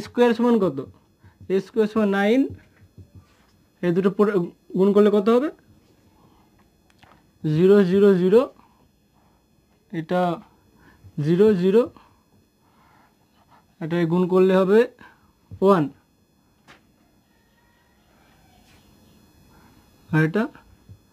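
A young man speaks calmly in short phrases, explaining.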